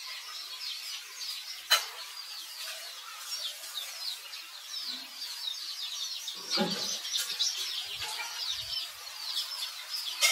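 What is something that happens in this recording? A baby monkey squeaks with high, thin cries.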